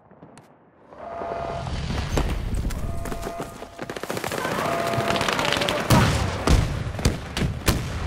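Gunfire and battle noise rumble loudly outdoors.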